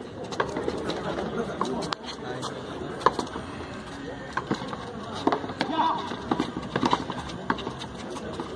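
A ball smacks against a wall and echoes off the court.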